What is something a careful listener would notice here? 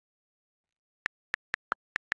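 Keyboard keys tick in short, sharp taps.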